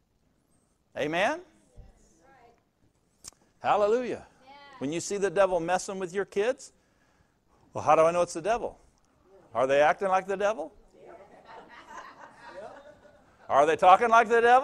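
An elderly man preaches with animation through a microphone in a large hall.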